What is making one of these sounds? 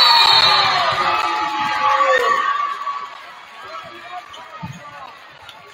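A crowd cheers loudly in a large echoing gym and then quiets down.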